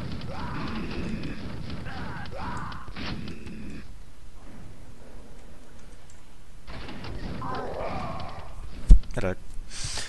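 Gunshots bang in a game.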